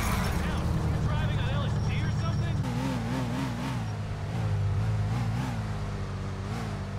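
A sports car engine idles with a low rumble.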